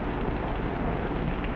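Heavy rain pours and splashes against a window.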